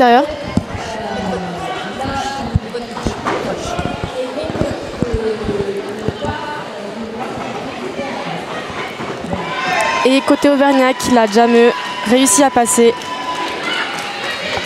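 A crowd of players and spectators shouts and calls out in an echoing hall.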